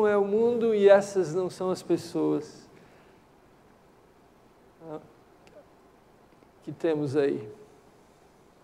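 A middle-aged man speaks calmly and warmly into a microphone, with pauses.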